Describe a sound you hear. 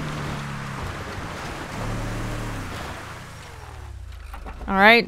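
A car engine hums as it drives.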